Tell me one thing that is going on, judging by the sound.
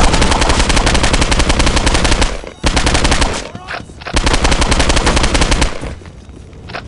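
A rifle fires rapid bursts of automatic shots.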